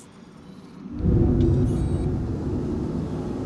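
A spaceship engine rumbles loudly to life.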